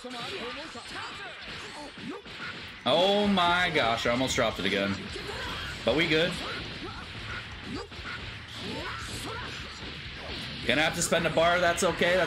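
An energy blast whooshes and roars.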